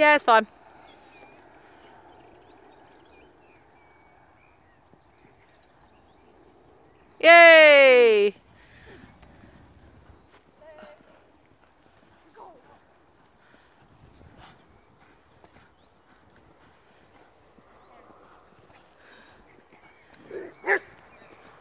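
A horse canters across soft grass with dull hoofbeats in the distance.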